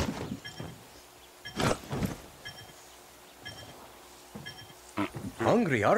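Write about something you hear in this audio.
Footsteps clatter on a tin roof.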